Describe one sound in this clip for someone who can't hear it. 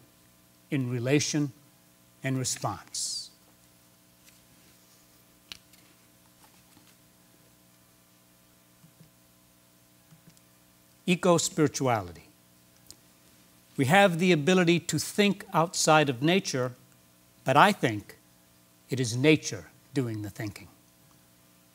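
A middle-aged man speaks calmly into a microphone, in short phrases with long pauses.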